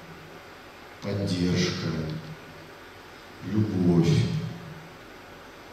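A man speaks slowly into a microphone in a large echoing hall.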